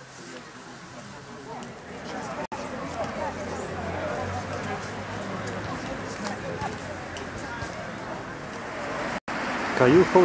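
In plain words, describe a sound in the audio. A group of men and women chatter nearby outdoors.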